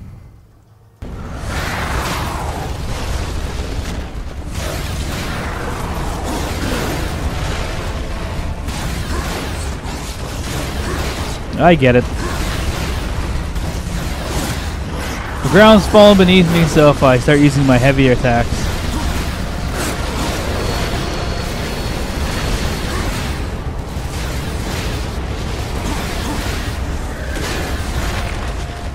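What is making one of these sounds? Blades clash and slash in a game battle.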